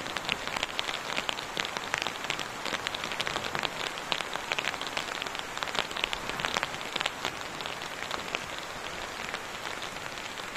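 A plastic tarp rustles and crackles as it is handled.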